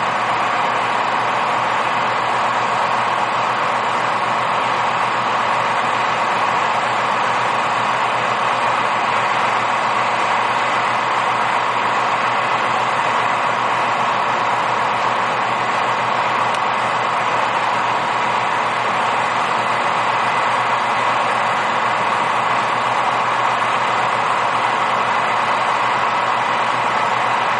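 A loader's diesel engine runs with a steady rumble.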